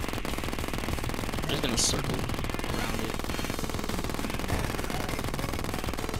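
Rapid laser shots zap again and again.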